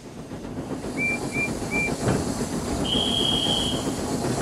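A steam engine whistle toots several times.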